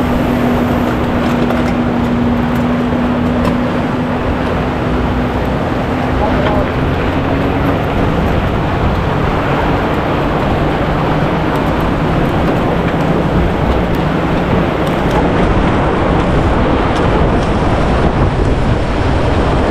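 Fat bike tyres crunch and hiss over packed snow.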